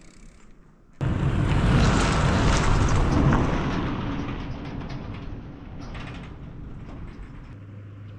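A vehicle towing a trailer rumbles past close by and fades.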